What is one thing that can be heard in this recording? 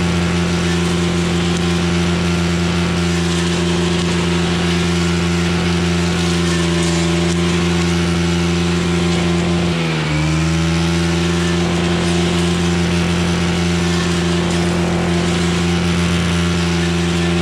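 The trimmer line whips and slashes through weeds and grass.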